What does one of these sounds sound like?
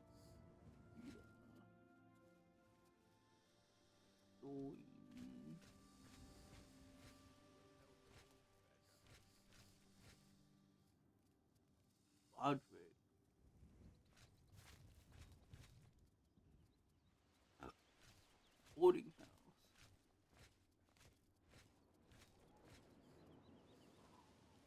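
Footsteps tread on stone paving.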